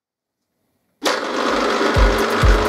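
A milling machine motor whirs steadily as a gear cutter spins.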